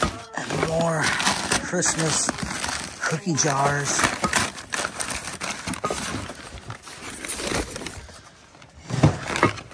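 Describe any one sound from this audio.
Newspaper crinkles as wrapped items are handled.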